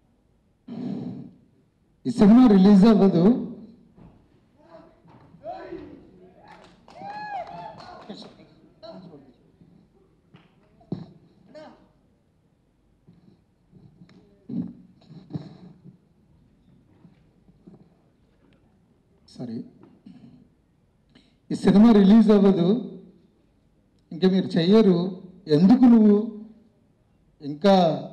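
A man speaks with feeling into a microphone, heard over a loudspeaker.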